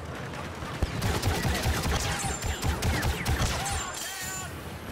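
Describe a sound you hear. Blaster shots crack rapidly in quick bursts.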